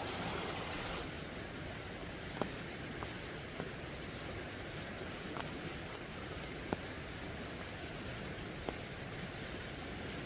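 A river flows nearby.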